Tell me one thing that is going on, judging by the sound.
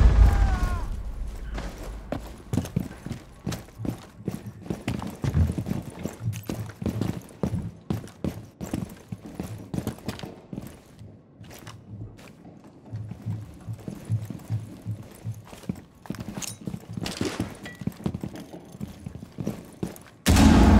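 Footsteps thud steadily across a wooden floor.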